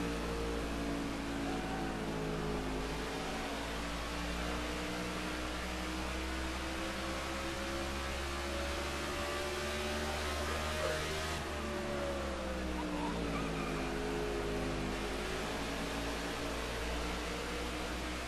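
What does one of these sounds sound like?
A race car engine roars steadily, its pitch rising and falling with speed.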